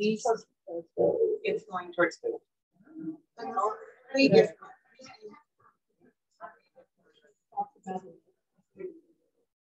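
A young woman reads a story aloud with expression, heard through an online call.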